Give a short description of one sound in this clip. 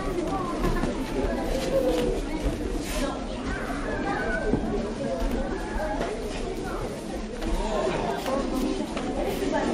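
Padded gloves thump against bodies in sparring.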